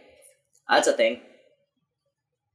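A young woman laughs softly close to a microphone.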